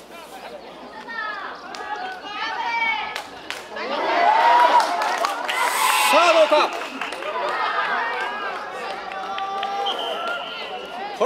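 Spectators shout and cheer outdoors as a play unfolds.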